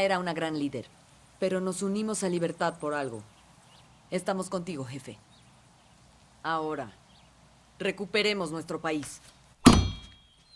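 A woman speaks firmly and clearly, close by.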